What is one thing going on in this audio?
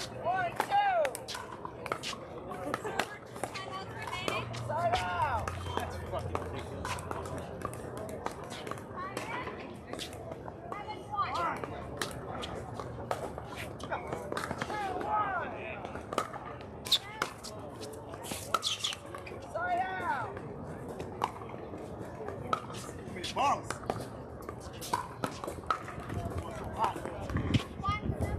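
Paddles pop sharply against a plastic ball in a rally outdoors.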